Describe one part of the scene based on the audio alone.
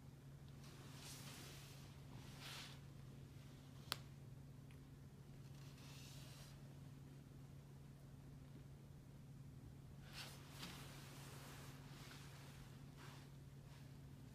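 A young woman breathes in and out deeply and slowly.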